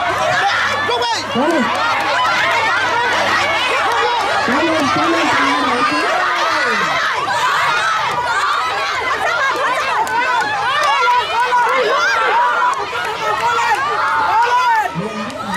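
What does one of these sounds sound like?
A crowd of children and adults cheers and shouts excitedly all around.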